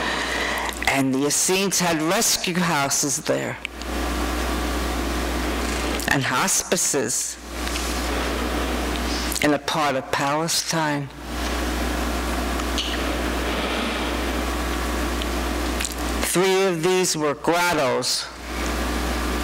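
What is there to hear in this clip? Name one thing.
An elderly woman reads out calmly through a microphone in an echoing room.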